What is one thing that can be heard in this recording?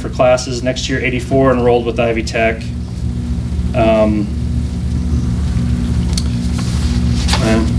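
A man speaks calmly into a microphone, reading out.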